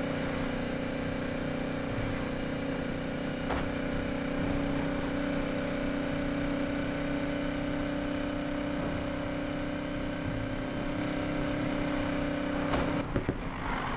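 A car engine drones steadily at high speed.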